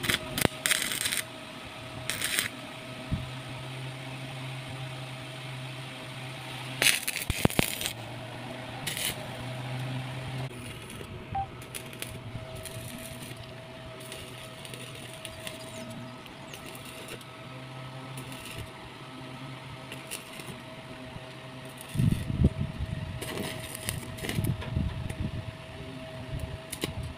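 An electric arc welder crackles and sizzles in short bursts.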